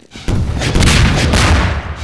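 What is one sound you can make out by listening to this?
A rocket launcher fires with a loud, booming blast.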